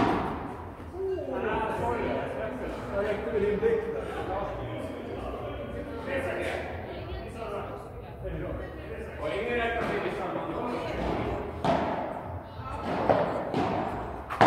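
Men talk casually between points in an echoing hall.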